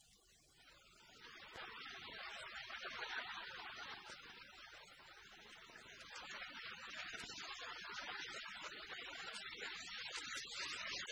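An audience laughs and applauds loudly.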